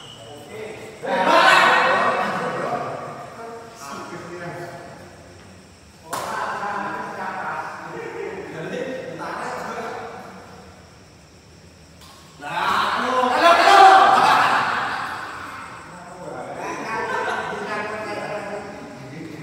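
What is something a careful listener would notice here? Men shout and call out loudly in an echoing hall.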